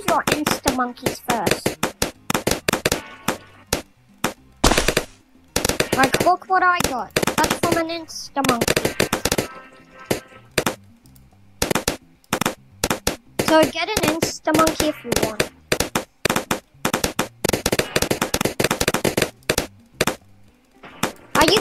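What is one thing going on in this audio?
Game balloons pop in quick bursts of clicks.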